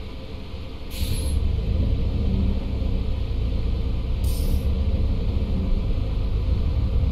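A bus engine roars louder as the bus pulls away.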